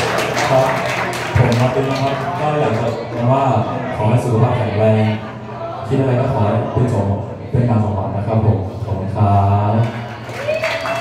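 A second young man speaks animatedly into a microphone over a loudspeaker.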